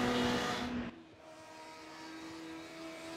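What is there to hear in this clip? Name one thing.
A racing car engine fades into the distance.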